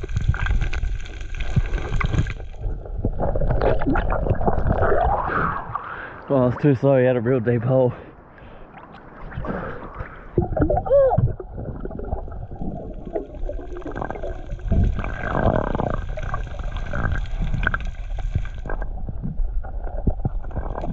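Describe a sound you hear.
Water gurgles and rushes close by underwater.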